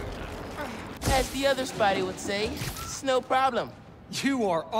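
A game character speaks in a young man's voice.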